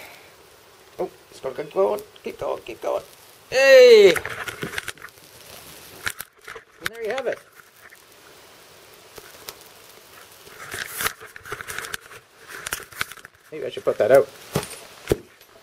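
A man speaks casually, close by.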